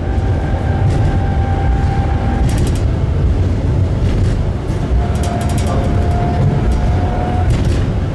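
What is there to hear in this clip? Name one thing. Tram wheels squeal and click over the rail joints.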